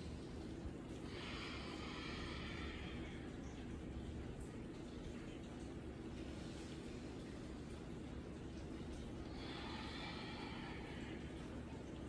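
A woman breathes out deeply.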